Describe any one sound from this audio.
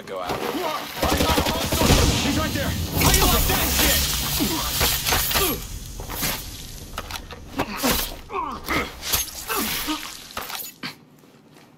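Heavy blows and thuds land in a close scuffle between men.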